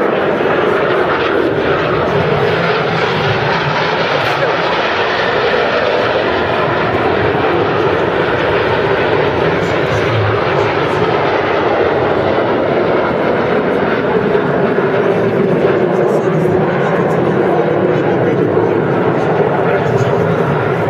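A formation of jet planes roars steadily overhead.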